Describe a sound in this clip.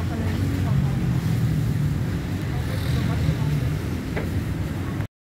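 A woman speaks calmly into microphones close by.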